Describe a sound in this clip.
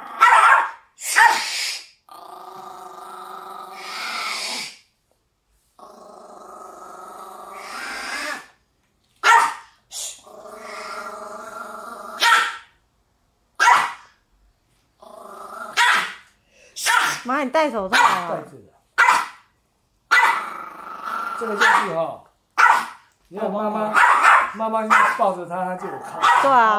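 A small dog barks and growls.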